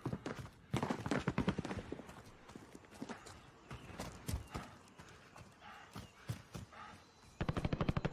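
Footsteps crunch on dry grass outdoors.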